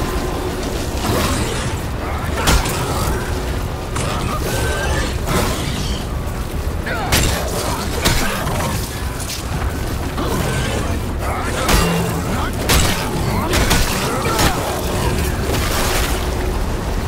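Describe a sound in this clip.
Monsters screech and growl.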